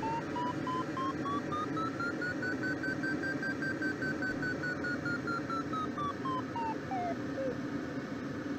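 A variometer beeps rapidly, its pitch rising, then falling away until it stops.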